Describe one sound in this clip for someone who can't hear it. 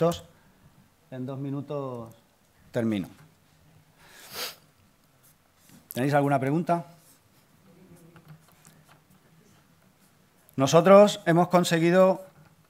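A man speaks calmly through a microphone in a large hall, in short phrases with pauses.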